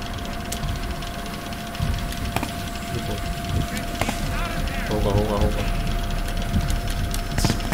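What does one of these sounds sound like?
Short game clicks sound as a cursor moves over a puzzle board.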